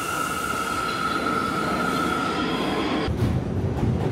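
A subway train rolls past with squealing brakes.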